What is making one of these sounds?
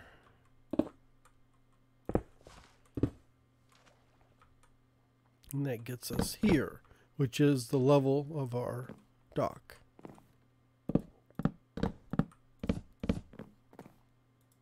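Footsteps tap on hard stone and wood.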